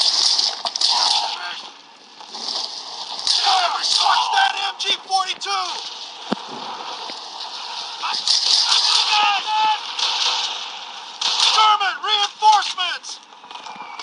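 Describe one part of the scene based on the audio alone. Rapid machine gun fire rattles in bursts.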